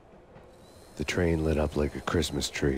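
A young man speaks with animation close to a headset microphone.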